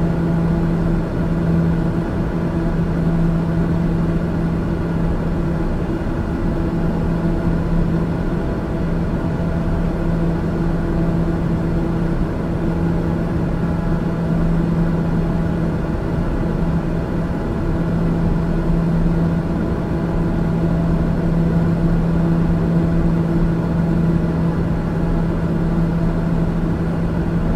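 Jet engines hum steadily in the cabin of a plane in flight.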